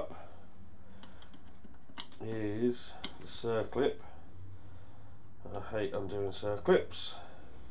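A metal tool clicks and scrapes against metal parts.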